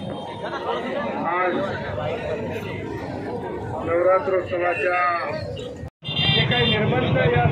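Men shout and call out loudly in a crowd.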